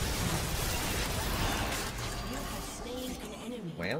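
Loud fighting sound effects from a video game clash and crackle.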